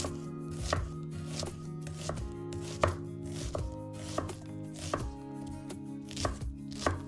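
A knife chops through an onion on a wooden board with sharp, regular thuds.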